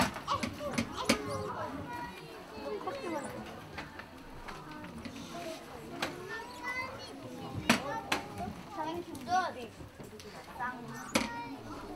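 A woman talks quietly in a large hall.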